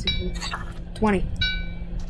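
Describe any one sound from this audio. An item pops as it is picked up.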